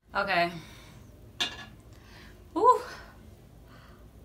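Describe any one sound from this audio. A young woman talks close by, with animation.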